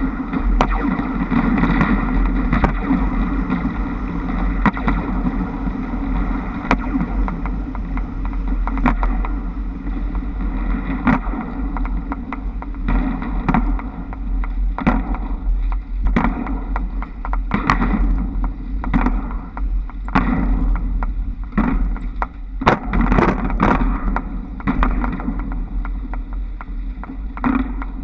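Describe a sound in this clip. Trolley poles clatter and click along overhead wires.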